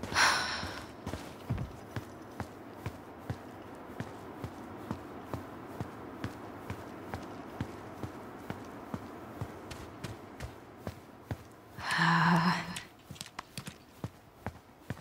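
Footsteps tread on pavement at a walking pace.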